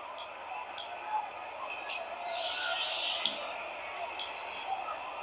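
Short menu clicks sound from a mobile game.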